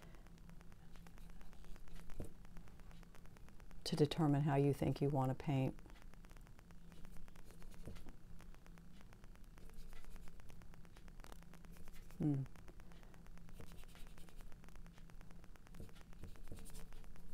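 A paintbrush dabs and scrapes softly on canvas.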